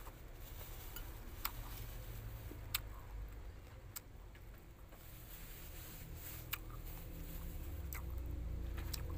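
A young woman chews crunchy food close up, with sharp crisp crunches now and then.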